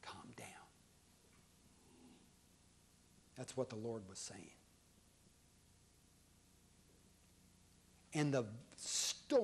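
A middle-aged man speaks slowly and calmly in short phrases, in a room with some echo.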